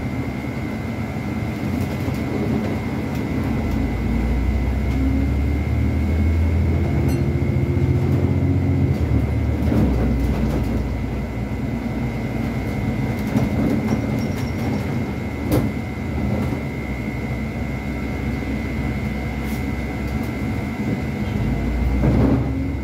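A bus engine rumbles and hums steadily as the bus drives.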